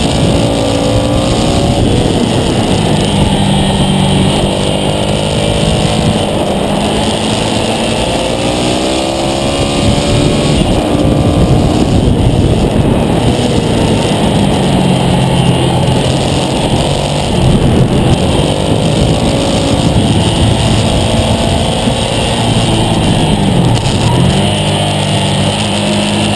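A motorcycle engine roars loudly up close, rising and falling in pitch as it accelerates and shifts gears.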